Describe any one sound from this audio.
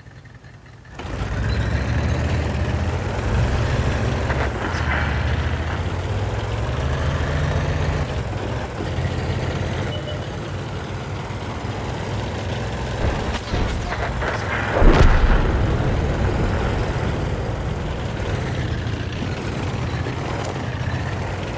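A tank engine rumbles as it drives over rough ground.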